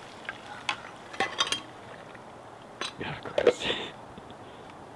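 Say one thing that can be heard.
Liquid pours from a metal pot.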